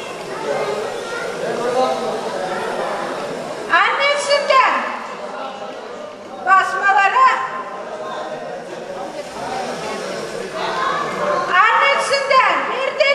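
A middle-aged woman calls out loudly with animation, close by.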